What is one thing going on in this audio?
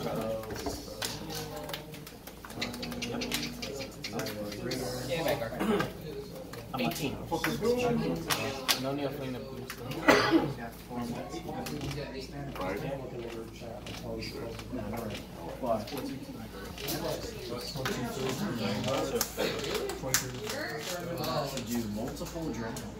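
Playing cards slap and slide on a table.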